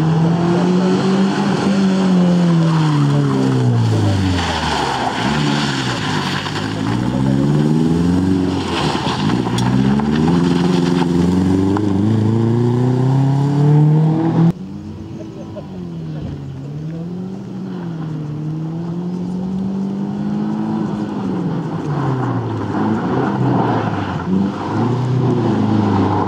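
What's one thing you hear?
A rally car engine revs hard, rising and falling as the car drifts around tight turns.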